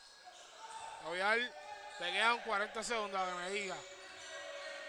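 A young man shouts loudly in an echoing gym.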